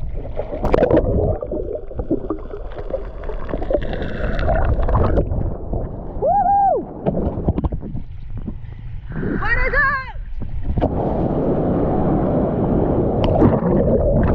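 Water rushes and churns underwater.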